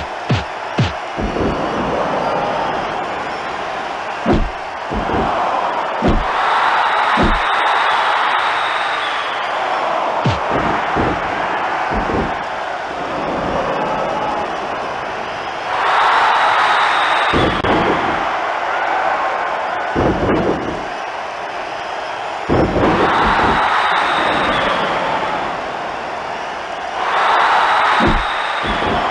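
Heavy thuds and slams of bodies hitting a wrestling mat ring out now and then.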